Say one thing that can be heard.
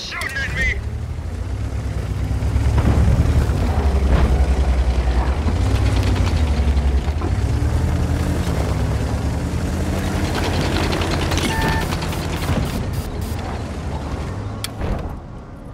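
A heavy tank engine rumbles and roars.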